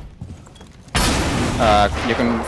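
Gunshots fire in rapid bursts nearby.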